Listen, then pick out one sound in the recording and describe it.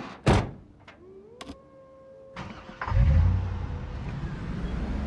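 A van engine starts and rumbles steadily.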